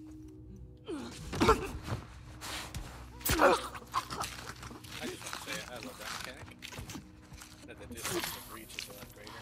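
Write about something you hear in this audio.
A young woman grunts with effort while grappling.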